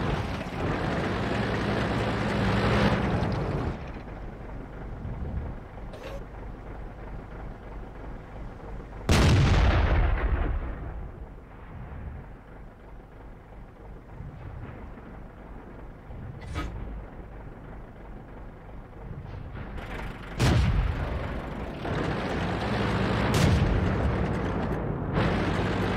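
A tank engine rumbles and roars while driving.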